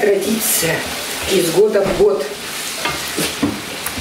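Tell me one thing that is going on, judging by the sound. A spoon scrapes and stirs in a pan.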